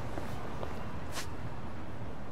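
A short whoosh sounds as a menu opens.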